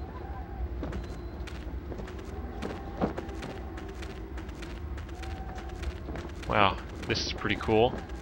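Footsteps run over soft ground.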